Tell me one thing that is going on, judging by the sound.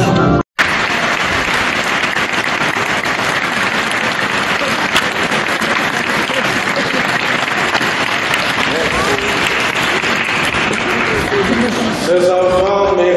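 Children clap their hands in a large echoing hall.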